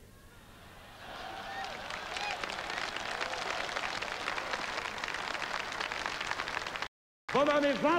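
A large audience claps and cheers loudly.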